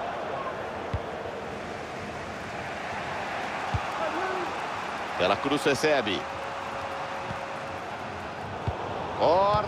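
A football is kicked with short dull thuds.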